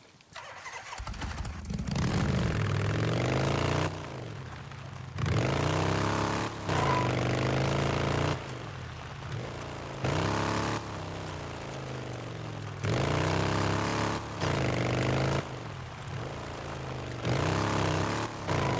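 A motorcycle engine starts and revs up and down as the motorcycle rides along.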